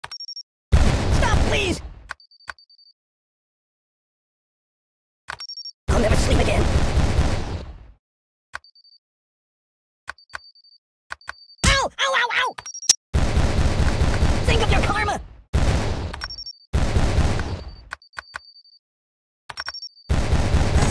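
A short beep sounds from a mine before it goes off.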